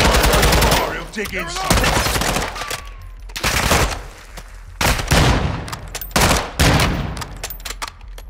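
Loud gunshots fire in quick bursts, echoing indoors.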